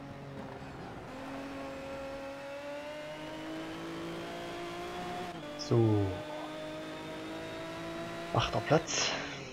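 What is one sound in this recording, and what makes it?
A racing car engine accelerates at full throttle, its pitch climbing.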